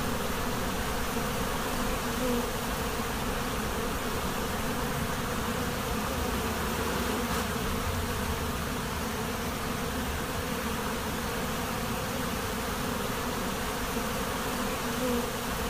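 A dense swarm of bees buzzes loudly and steadily up close.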